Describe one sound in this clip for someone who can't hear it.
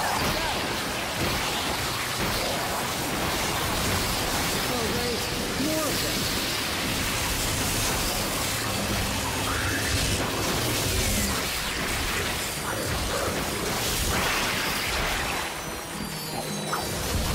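Electric beams crackle and hum.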